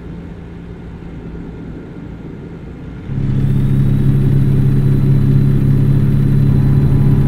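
A truck engine hums steadily, growing louder partway through.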